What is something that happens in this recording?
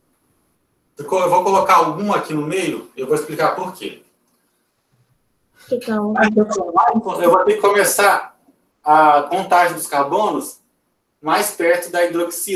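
A man speaks calmly over an online call, explaining.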